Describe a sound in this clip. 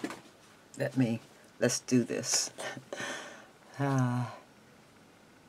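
A sheet of paper rustles as it is picked up.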